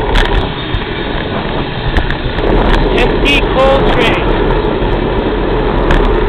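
A long freight train rumbles past in the distance.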